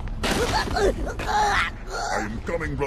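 An energy sword swings with a sharp whoosh.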